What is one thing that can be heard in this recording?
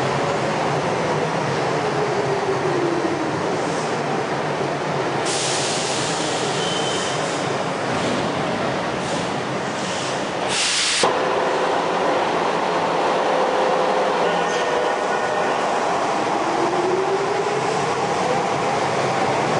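A train's electric motor whines, falling in pitch as it stops and rising as it leaves.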